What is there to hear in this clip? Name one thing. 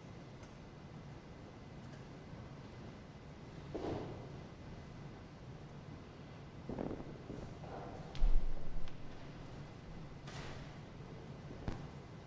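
People shift and rustle softly in a large echoing hall.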